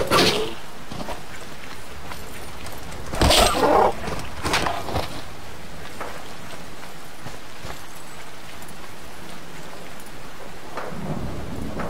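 Rain falls steadily all around.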